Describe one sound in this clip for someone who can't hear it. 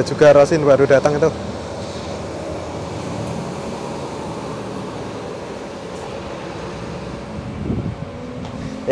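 A bus engine rumbles as a bus drives slowly past.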